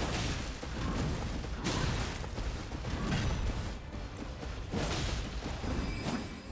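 A horse gallops with heavy thudding hooves.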